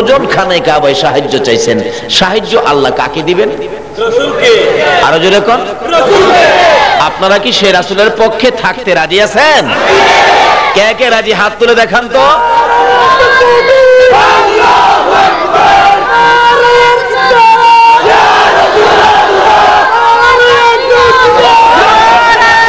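A man preaches in a loud, melodic chanting voice through a microphone.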